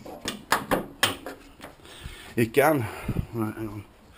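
A car bonnet clunks and creaks as it is lifted open.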